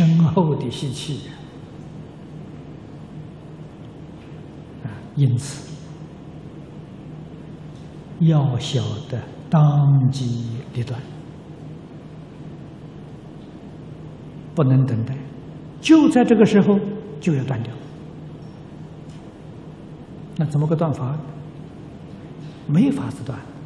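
An elderly man speaks calmly through a microphone, in short phrases with pauses.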